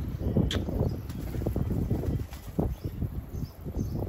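A pigeon's wings flap as it takes off.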